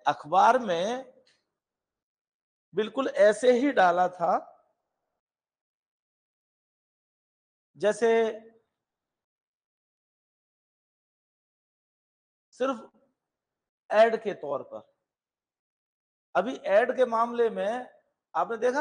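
A middle-aged man lectures calmly in short phrases with long pauses.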